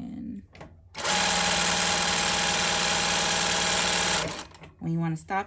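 A sewing machine runs quickly and steadily, stitching fabric.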